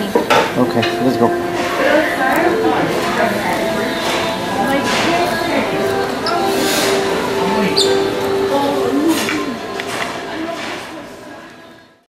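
Many people chatter and murmur all around.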